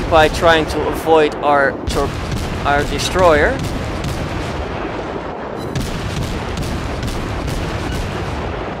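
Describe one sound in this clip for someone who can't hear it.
Ship guns fire again and again with sharp booming shots.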